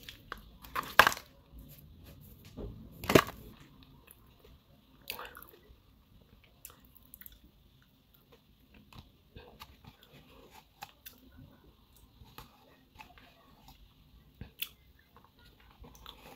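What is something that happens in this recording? A person crunches and chews food close by.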